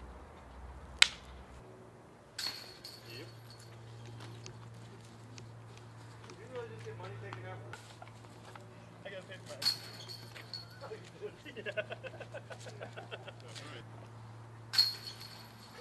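A flying disc clanks into a basket's metal chains.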